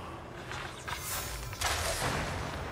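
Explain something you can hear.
A bow twangs as an arrow is loosed.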